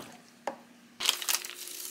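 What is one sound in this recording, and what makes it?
A plastic packet crinkles and rustles.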